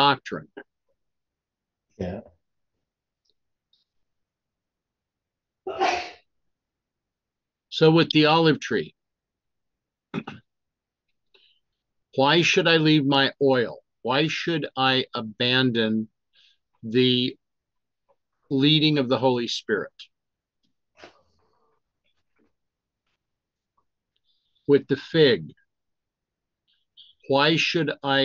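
An older man speaks calmly and haltingly into a close microphone, with long pauses.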